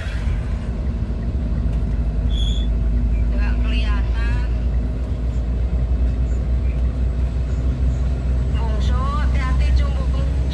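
A heavy truck engine rumbles steadily while driving.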